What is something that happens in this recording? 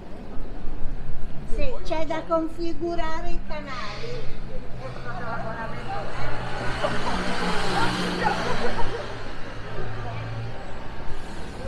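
A tram rumbles along its tracks.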